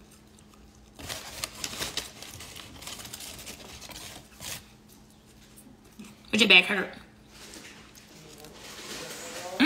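A young woman crunches a snack while eating.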